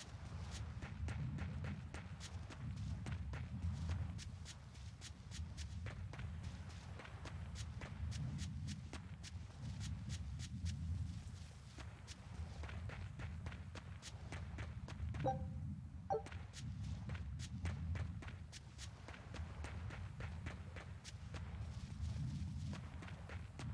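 Footsteps patter quickly on grass and earth.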